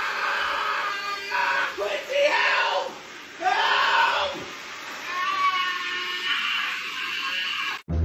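A bearded man groans and yells loudly, close by.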